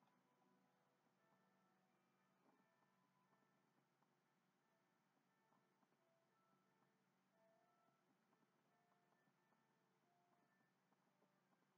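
Soft, tinkling game music plays quietly from a television.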